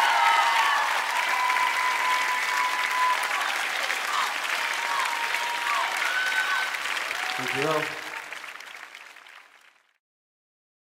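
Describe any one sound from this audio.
A large outdoor crowd applauds and cheers, then the applause fades away.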